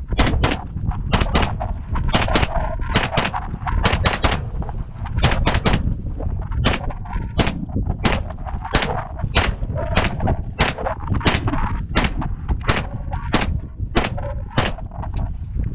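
A gun fires sharp single shots one after another outdoors.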